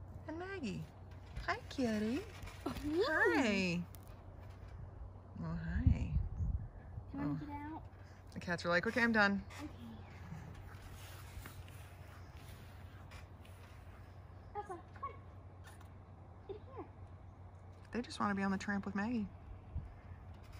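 A young girl talks with animation nearby.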